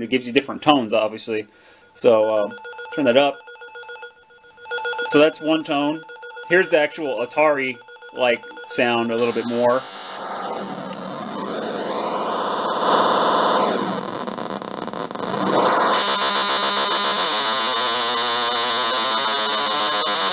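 An electronic echo effect repeats sounds in a warbling, droning tone.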